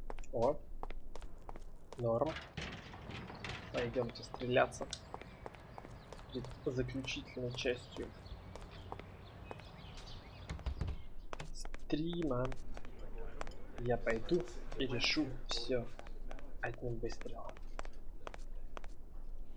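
Footsteps tap steadily on hard ground.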